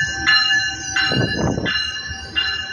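Wind buffets briefly as a train car passes close by.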